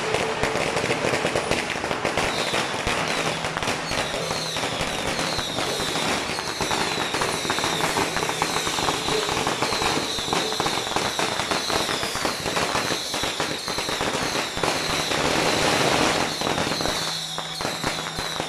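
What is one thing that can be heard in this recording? Firecrackers crackle and pop rapidly outdoors.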